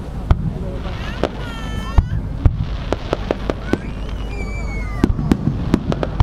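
Fireworks bang loudly outdoors, one after another.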